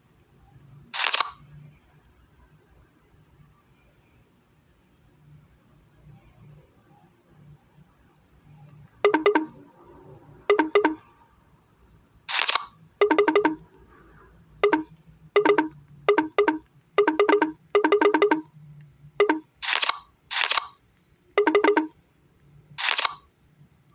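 Cards snap into place with short clicking sounds.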